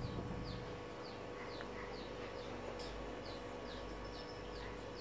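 Fingers handle a small metal part, rustling faintly.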